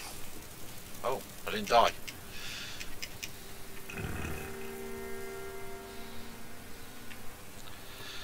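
A pig grunts and squeals.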